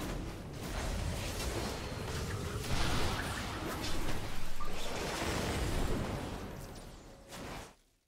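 Game combat sound effects clash and burst.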